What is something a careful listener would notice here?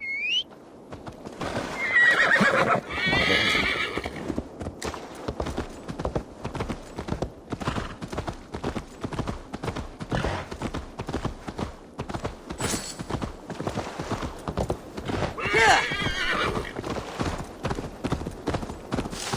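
A horse's hooves gallop quickly over soft ground.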